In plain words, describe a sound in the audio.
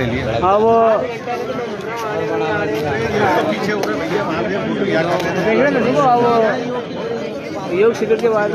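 A crowd of men and women talks loudly all at once close by.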